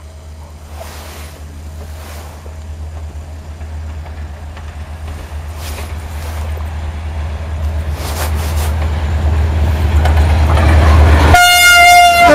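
Train wheels clatter on the rails as the train draws near.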